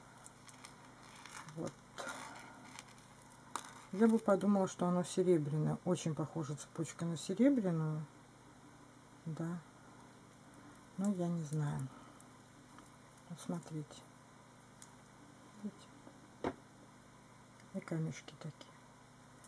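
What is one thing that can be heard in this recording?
A metal chain and beads clink softly against each other.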